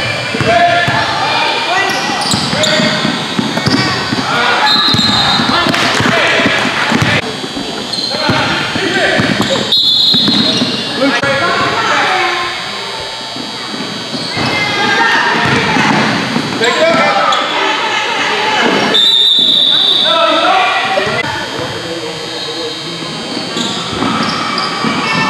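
A crowd of spectators chatters and calls out in an echoing gym.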